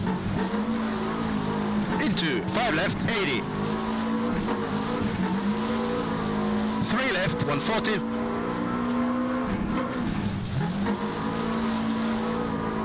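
Tyres crunch over snow and gravel.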